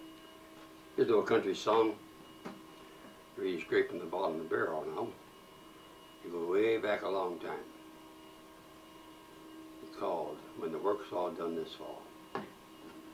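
An elderly man speaks calmly and close by, in short phrases with pauses.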